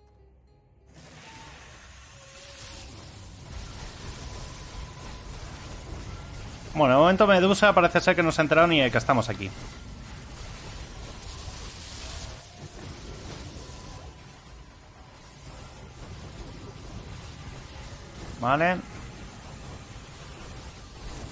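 Magical blasts and whooshes sound in quick succession.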